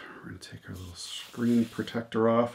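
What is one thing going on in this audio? Paper rustles as a sheet is unfolded.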